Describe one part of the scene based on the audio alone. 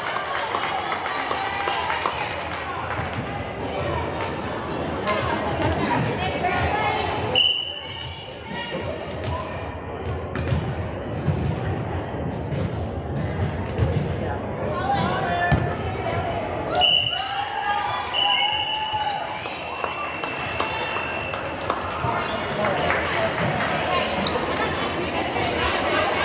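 Young girls chatter and call out in a large echoing hall.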